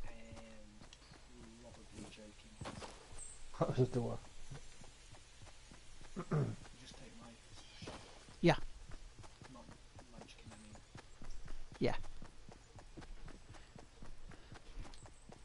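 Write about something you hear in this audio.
Footsteps patter quickly on grass and dirt.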